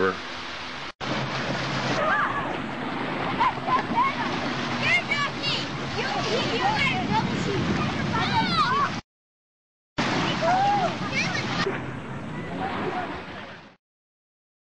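Waves splash and churn.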